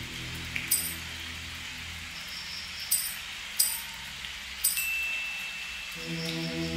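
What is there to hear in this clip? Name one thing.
Water trickles gently along a shallow stream.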